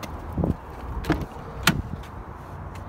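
A car door latch clicks and the door swings open.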